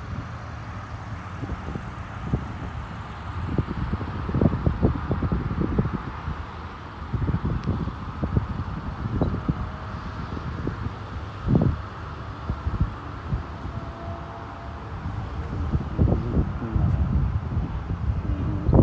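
Wind gusts outdoors, rumbling and buffeting in bursts.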